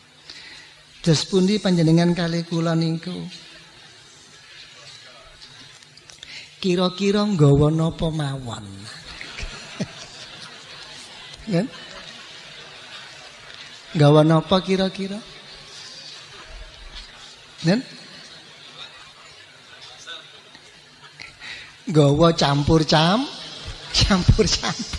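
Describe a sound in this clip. An elderly man speaks slowly and calmly through a microphone, in bursts with long pauses.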